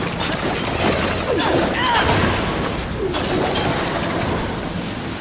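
Weapons clash and strike with sharp hits.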